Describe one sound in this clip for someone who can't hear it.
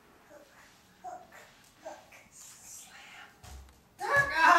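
A toddler babbles softly.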